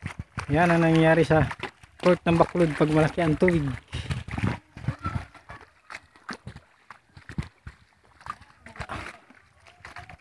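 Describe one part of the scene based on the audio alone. Feet splash and wade through shallow water.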